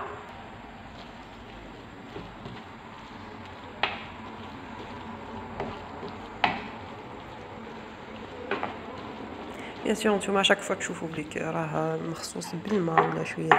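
A wooden spoon scrapes and knocks against a frying pan.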